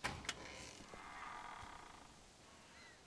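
A heavy metal door scrapes as it is pushed open.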